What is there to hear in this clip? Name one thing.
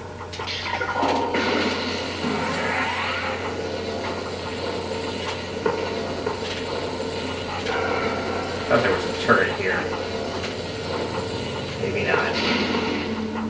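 A weapon in a video game hums as it charges a beam.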